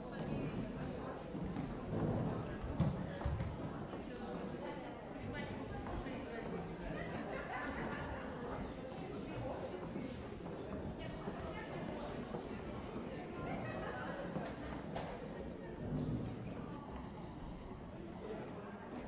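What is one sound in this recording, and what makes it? An audience murmurs and chatters in a large hall.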